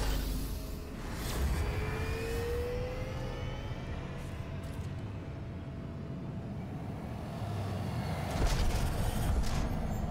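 Thrusters roar with a deep rumble as a craft lifts off and then sets down.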